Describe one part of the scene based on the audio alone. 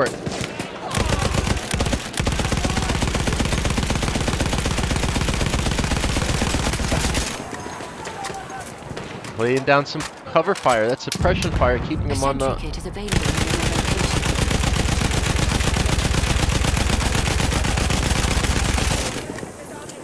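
A machine gun fires in long, rapid bursts.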